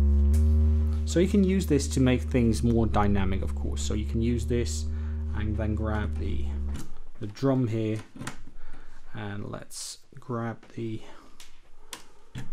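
A synthesizer plays short, plucked, ringing notes in a quick pattern.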